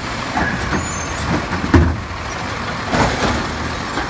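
A bin thuds back down onto the pavement.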